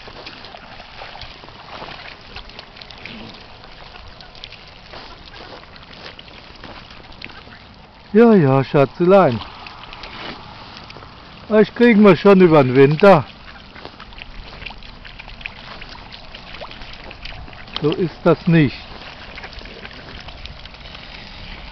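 Swans paddle and splash softly in shallow water.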